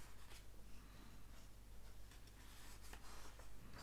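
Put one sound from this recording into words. A paper page rustles softly as it is turned.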